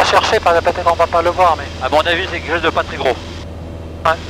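A man speaks quickly over an intercom headset.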